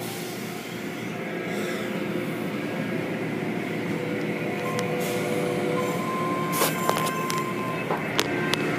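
Water sprays and splashes steadily onto a car.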